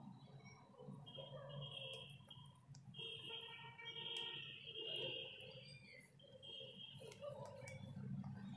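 Short soft tones blip in quick succession as letter tiles are tapped.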